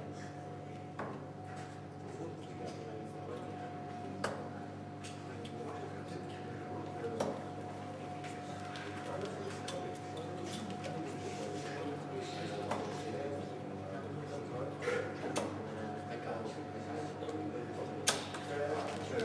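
Darts thud sharply into a dartboard, one after another.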